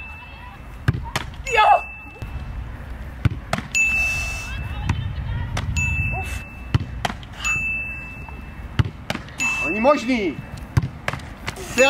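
A ball is kicked hard with sharp thuds, again and again.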